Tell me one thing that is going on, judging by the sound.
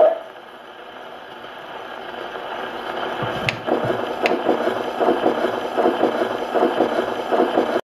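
A gramophone needle crackles and hisses on the spinning record.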